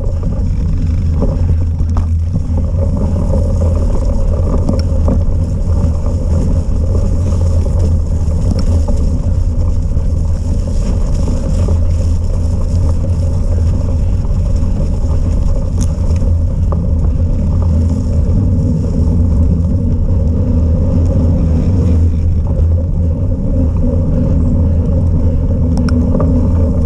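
Wind buffets and rumbles loudly outdoors.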